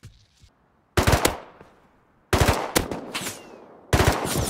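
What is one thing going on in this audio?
A rifle fires loud bursts of shots.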